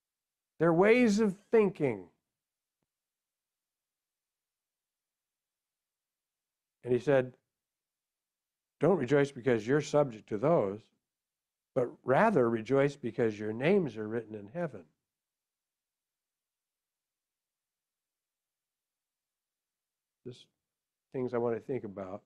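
A man speaks calmly with pauses, heard through a microphone.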